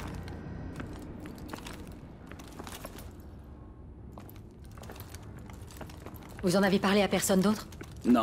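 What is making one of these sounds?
Heavy boots step on a metal floor.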